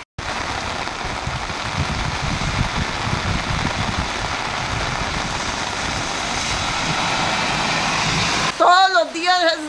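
Heavy rain pours down outdoors with a steady rush.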